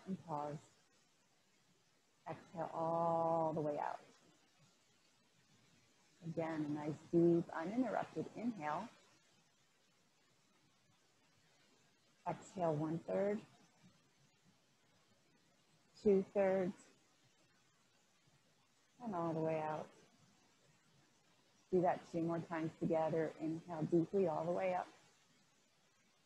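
A woman speaks calmly and slowly into a microphone, pausing between phrases.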